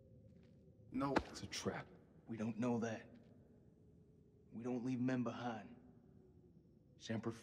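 A young man speaks quietly and calmly.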